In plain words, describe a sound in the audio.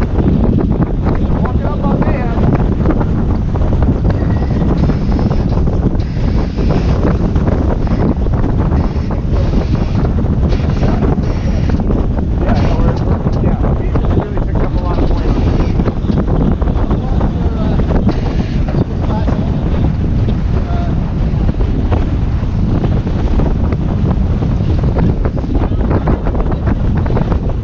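Water rushes and splashes against a sailing boat's hull.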